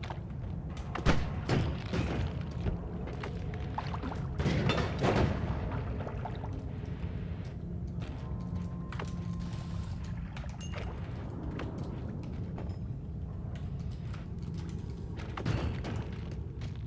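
Video game magic spells fire with bursts and crackles.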